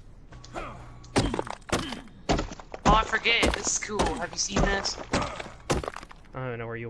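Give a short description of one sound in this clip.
A stone pick strikes rock with sharp knocks.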